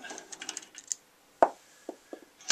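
A screwdriver clicks against a metal lock housing.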